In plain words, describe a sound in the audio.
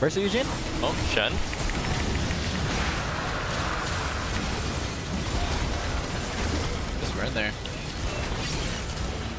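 Fantasy combat sound effects clash and burst as spells are cast.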